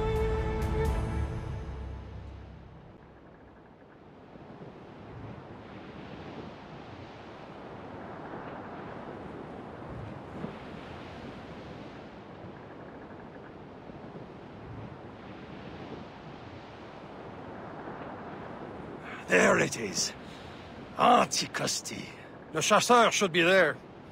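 Waves rush and splash against a sailing ship's hull.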